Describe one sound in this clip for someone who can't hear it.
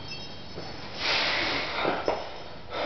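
A man breathes out hard while lifting.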